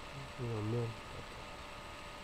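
A young man speaks briefly and calmly close to a microphone.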